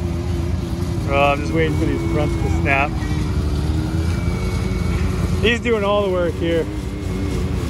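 A young man talks loudly nearby.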